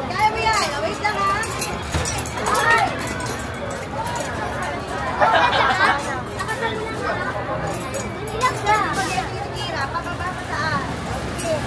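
A crowd chatters around close by.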